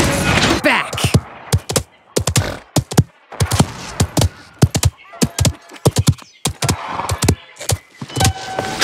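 Hooves pound in a quick, uneven gallop.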